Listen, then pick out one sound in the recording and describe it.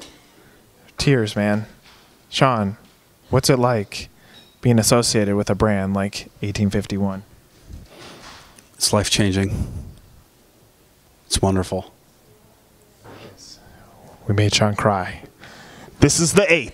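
A man talks into a microphone with animation, close by.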